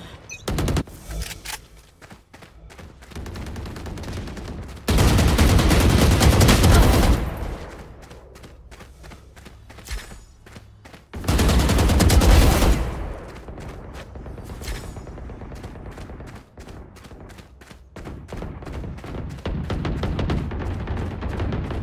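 Footsteps tread quickly on the ground.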